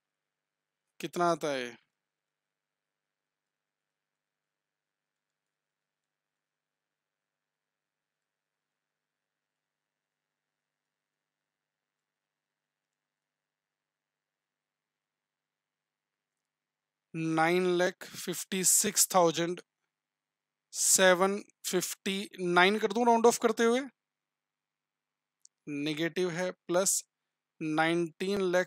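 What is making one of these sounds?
A man speaks calmly and close to a microphone, with long pauses.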